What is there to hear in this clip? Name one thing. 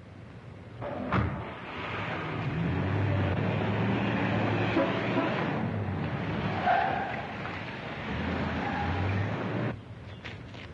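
A sedan's engine pulls away down a street.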